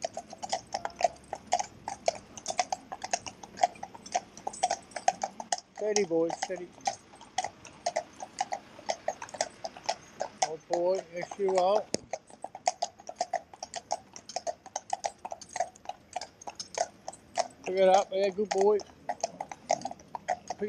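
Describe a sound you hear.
Horses' hooves clop steadily on a paved road.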